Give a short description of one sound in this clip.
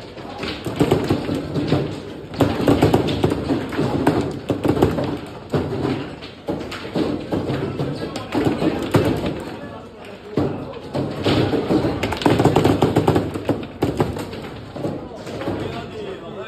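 A crowd of young people talk and shout excitedly close by.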